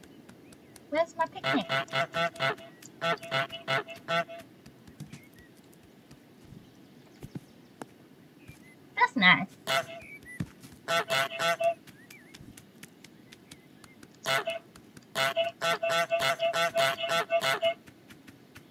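A cartoon goose honks loudly again and again.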